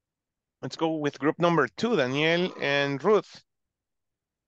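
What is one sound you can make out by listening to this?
A young man speaks calmly through a headset microphone on an online call.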